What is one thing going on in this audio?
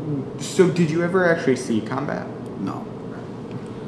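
An elderly man speaks calmly close to the microphone.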